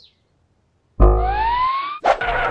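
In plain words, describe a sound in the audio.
A cartoon rabbit whooshes up into the air.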